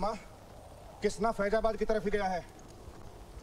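An older man speaks loudly and forcefully.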